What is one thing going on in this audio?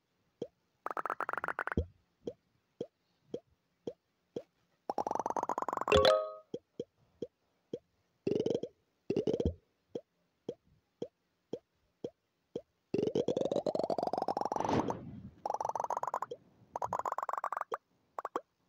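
A ball bounces with short repeated pops.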